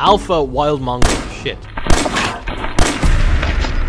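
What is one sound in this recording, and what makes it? Pistol shots ring out sharply.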